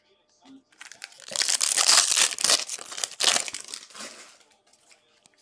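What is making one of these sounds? A plastic wrapper crinkles as it is torn open.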